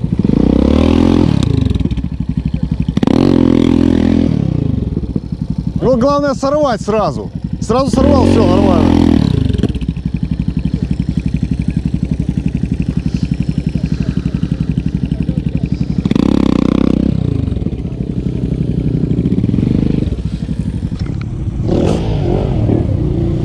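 A motorcycle engine revs in loud bursts close by.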